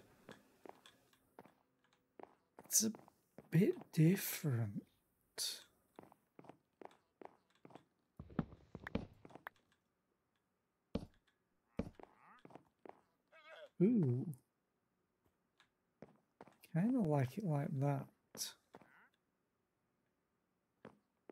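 Footsteps tap on wooden boards.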